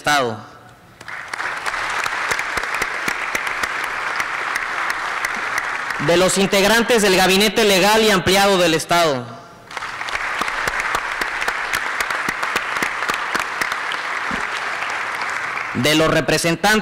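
A large crowd claps and cheers.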